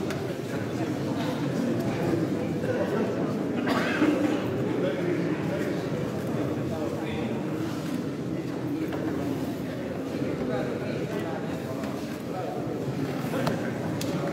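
A men's choir sings together in harmony, echoing through a large reverberant hall.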